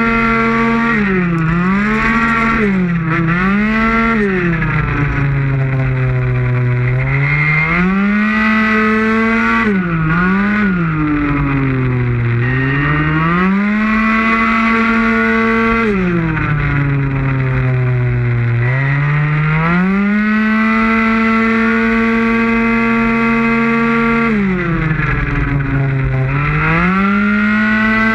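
A motorcycle engine roars close by, its pitch rising and falling as it revs up and shifts down through corners.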